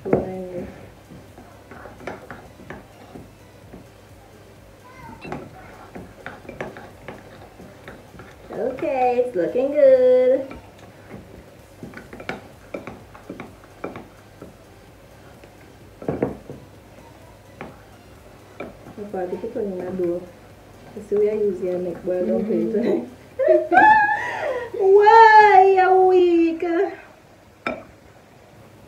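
A whisk clinks and scrapes against a bowl.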